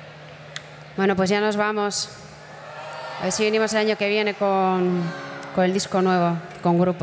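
A young woman sings loudly through a microphone and loudspeakers.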